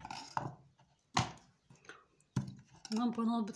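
A hand drops pieces of food into a plastic container with soft knocks.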